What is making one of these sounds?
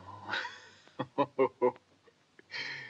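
A man chuckles in short bursts.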